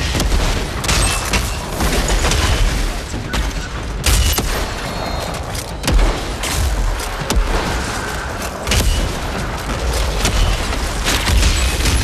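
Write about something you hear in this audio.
Large creatures roar and growl.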